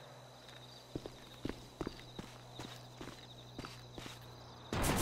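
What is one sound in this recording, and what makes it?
Footsteps crunch on gravel at a walking pace.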